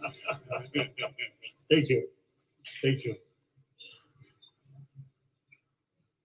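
An elderly man speaks and laughs close by.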